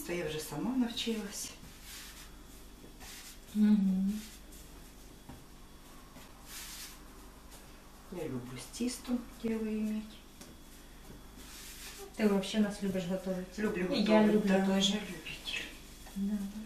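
A middle-aged woman talks calmly nearby.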